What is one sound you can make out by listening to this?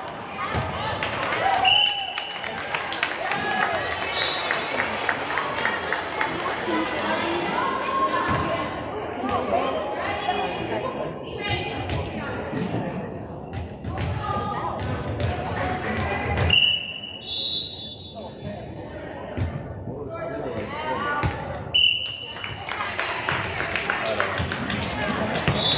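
Girls chatter and call out in a large echoing gym.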